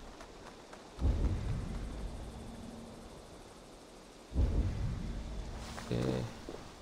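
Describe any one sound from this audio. A deep whooshing surge swells and slowly fades.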